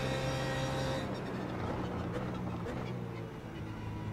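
A car downshifts with sharp bursts from the engine.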